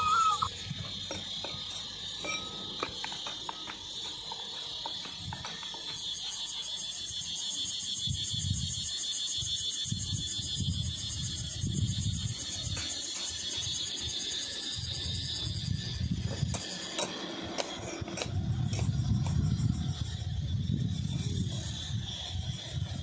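A hoe chops and scrapes into dry, stony soil with repeated dull thuds.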